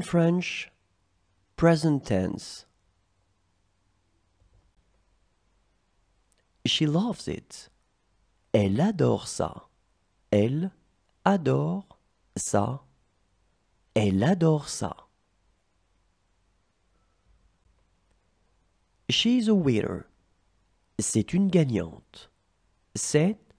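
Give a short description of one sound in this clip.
A young woman speaks clearly and slowly through a microphone, in short phrases with pauses.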